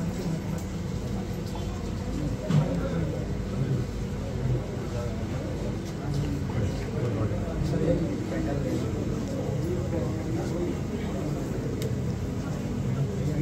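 A crowd of men and women murmurs and talks nearby in a room.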